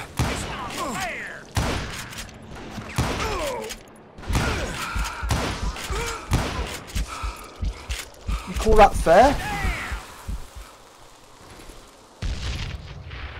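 Gunshots boom one after another, ringing out loudly.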